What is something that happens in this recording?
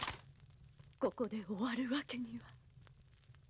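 A young woman speaks quietly and tensely, close by.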